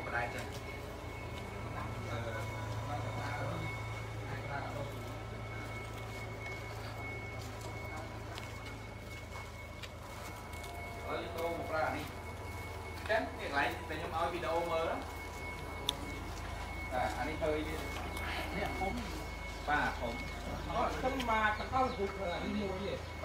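Several adults talk in turn nearby, outdoors.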